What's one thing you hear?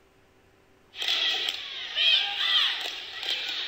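Young women shout a cheer in unison in a large echoing gym.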